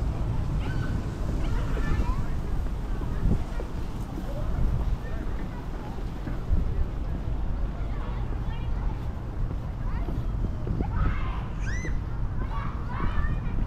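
Wind blows steadily and gusts against the microphone outdoors.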